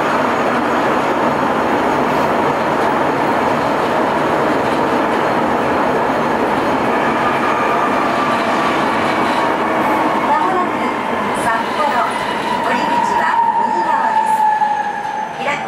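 A subway train rumbles loudly along the track.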